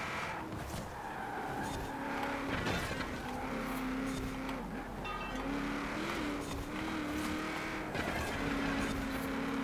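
A truck engine drones steadily, with its pitch shifting between gear changes.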